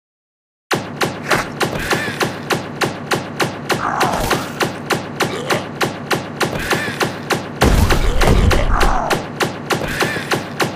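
A gun fires rapid, steady shots.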